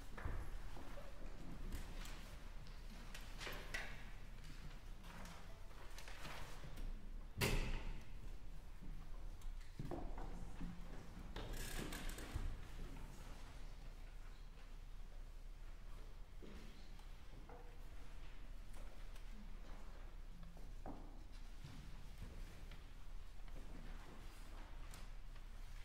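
A woman speaks to an audience in a large echoing hall.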